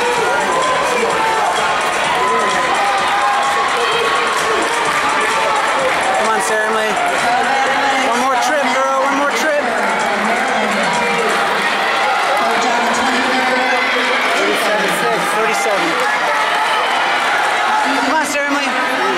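A crowd chatters and murmurs throughout a large echoing indoor arena.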